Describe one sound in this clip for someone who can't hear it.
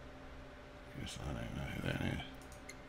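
A man speaks casually close to a microphone.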